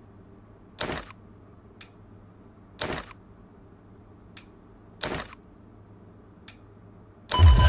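Short rustling clicks sound as items are moved in a game menu.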